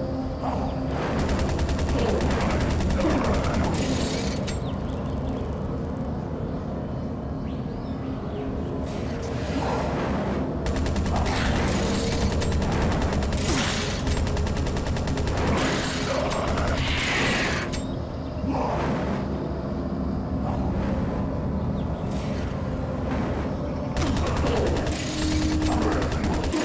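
A vehicle engine hums steadily throughout.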